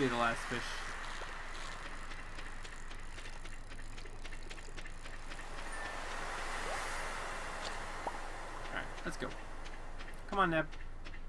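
A fishing reel clicks rapidly as a line is reeled in.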